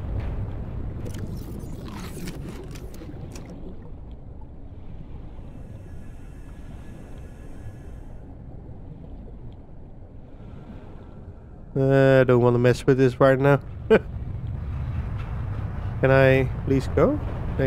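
Water rumbles low and steadily all around underwater.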